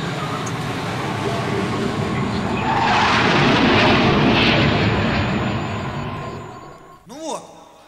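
A rocket engine roars and rumbles as it lands.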